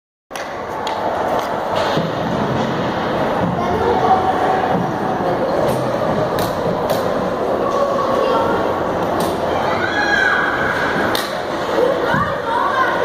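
A crowd of spectators chatters and cheers in a large echoing rink.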